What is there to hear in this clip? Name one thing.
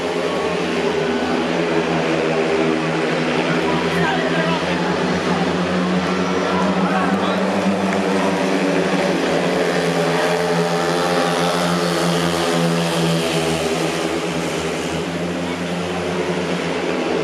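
A crowd murmurs and cheers in an open-air stadium.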